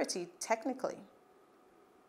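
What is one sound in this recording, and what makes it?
A woman speaks calmly and clearly into a close microphone.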